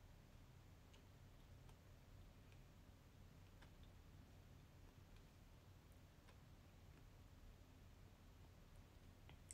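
A plastic fork clicks faintly against teeth.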